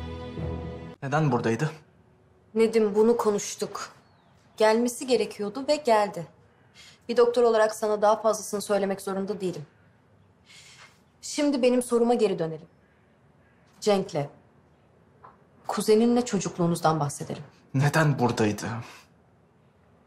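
A woman speaks calmly and seriously, close by.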